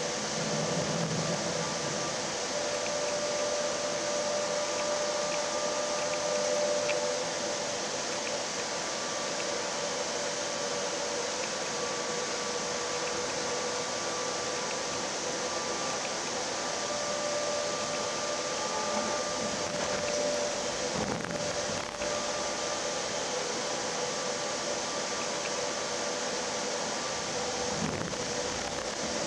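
Tyres roll over the road surface with a steady rush.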